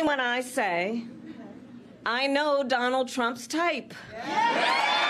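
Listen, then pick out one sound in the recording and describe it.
A woman speaks firmly into a microphone.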